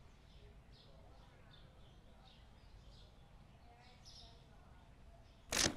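Soft electronic beeps sound as keys are tapped on a card terminal.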